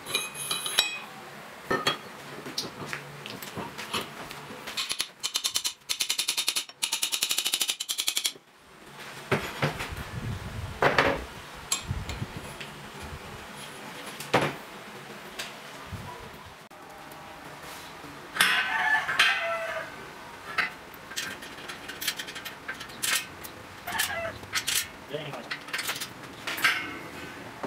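Metal parts clink and knock together.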